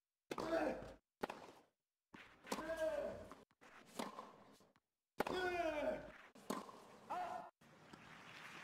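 A tennis ball pops off a racket in a rally.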